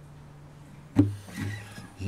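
A guitar bumps with a hollow knock.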